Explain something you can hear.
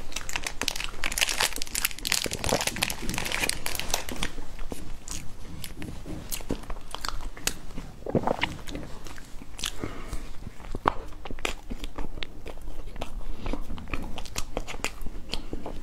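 A young woman speaks softly close to a microphone.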